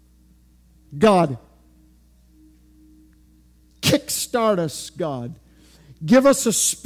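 A man speaks with emphasis through a headset microphone.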